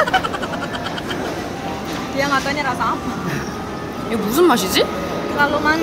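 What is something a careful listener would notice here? A second young woman talks and laughs close by.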